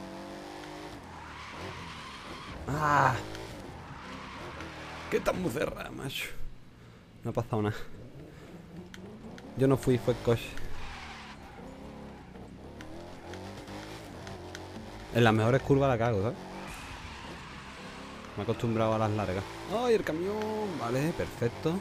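A car engine roars as a car drifts.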